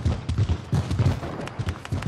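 Footsteps thud on a wooden ramp in a video game.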